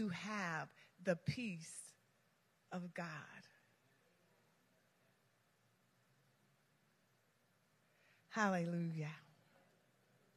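A woman speaks through a microphone in short phrases with long pauses, echoing in a large hall.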